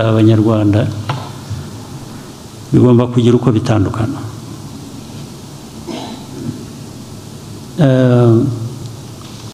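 A man speaks calmly into microphones in a large hall, with pauses between phrases.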